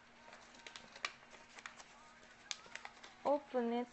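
Paper crinkles and rustles in hands.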